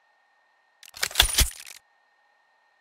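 A louder menu confirmation sound rings out once.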